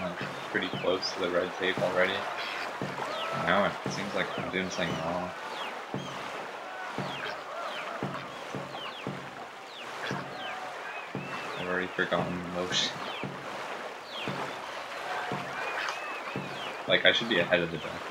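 Paddles splash rhythmically through water as a canoe speeds along.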